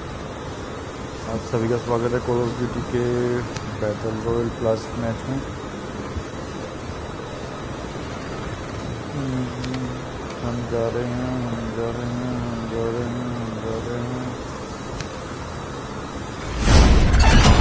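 An aircraft engine drones steadily.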